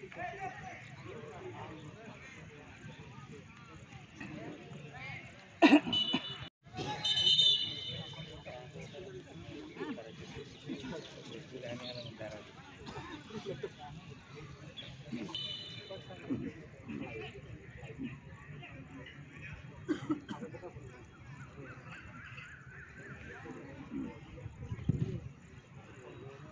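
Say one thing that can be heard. Young men chatter and call out nearby, outdoors.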